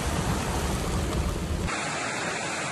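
Heavy rain pounds on a car windshield.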